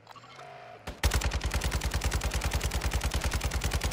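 A rifle fires in a rapid, loud burst.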